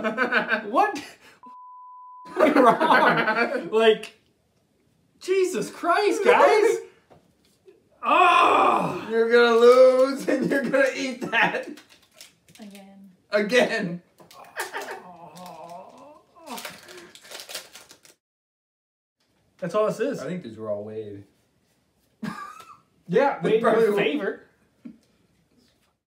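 A second man laughs and talks close to a microphone.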